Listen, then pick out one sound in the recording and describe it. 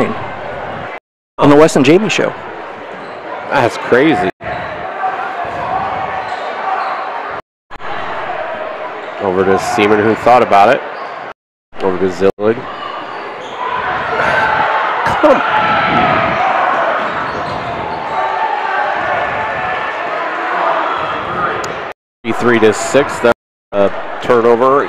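A basketball thuds as it is dribbled on the court.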